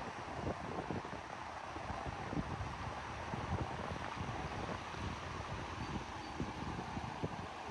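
A wide river rushes and churns steadily nearby.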